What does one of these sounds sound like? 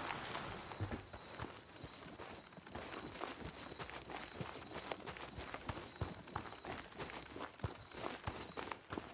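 Footsteps crunch quickly over dry dirt and gravel.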